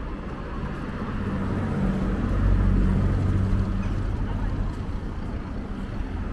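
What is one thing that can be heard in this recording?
A car engine hums as it drives slowly past close by.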